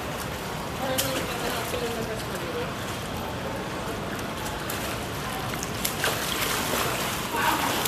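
Water splashes in a pool nearby.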